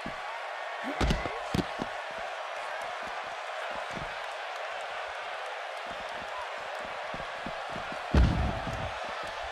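Heavy bodies thud onto the floor.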